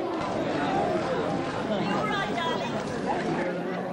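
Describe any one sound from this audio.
An elderly man and a woman talk close by amid the crowd.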